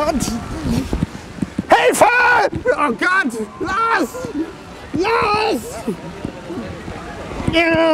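A young man yells and shouts in mock fright.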